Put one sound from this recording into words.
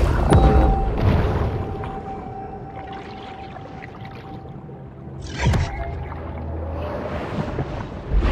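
Muffled underwater rumbling and swishing fill the background.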